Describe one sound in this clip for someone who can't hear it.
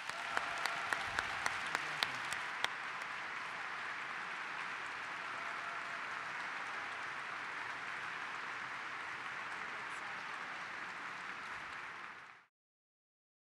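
An audience applauds in a large echoing hall.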